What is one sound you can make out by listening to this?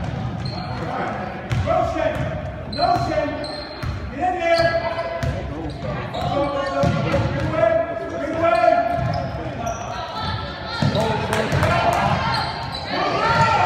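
Young girls shout and call out to each other.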